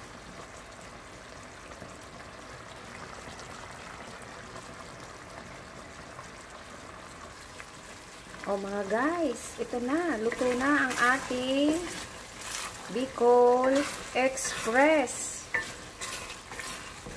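Thick sauce bubbles and simmers in a pan.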